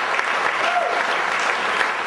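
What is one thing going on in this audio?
Guests clap their hands.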